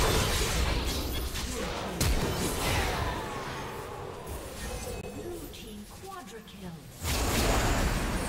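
Game spell effects whoosh and crackle in a fast fight.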